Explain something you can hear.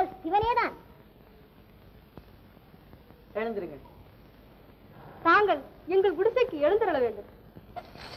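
A woman speaks loudly and with animation, heard through an old, thin recording.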